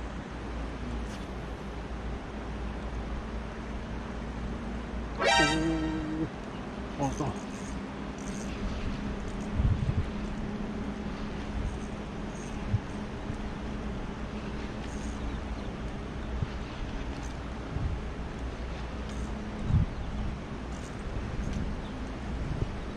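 A shallow river flows gently over stones.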